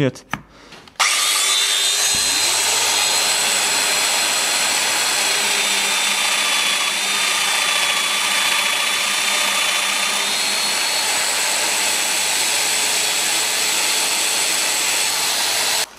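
An electric power tool motor whirs steadily.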